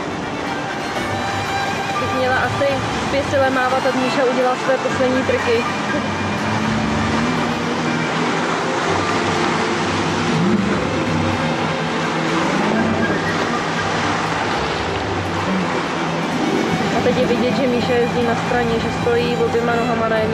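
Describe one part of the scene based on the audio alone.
Water sprays and splashes behind a jet ski.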